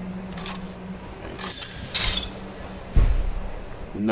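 A blade scrapes as a sword is drawn.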